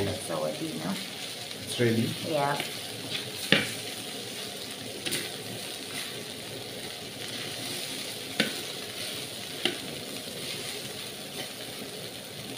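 A spatula scrapes and knocks against a metal pan.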